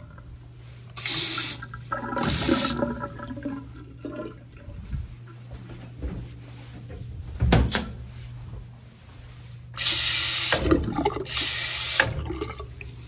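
Water gushes from a tap in short bursts into a sink.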